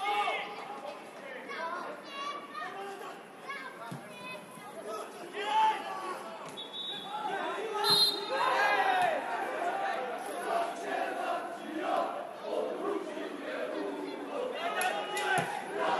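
Men shout to each other across an outdoor football pitch.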